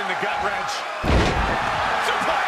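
A wrestler slams onto the ring mat with a heavy thud.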